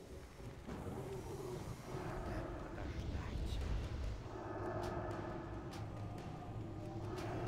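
Magic spells whoosh and burst.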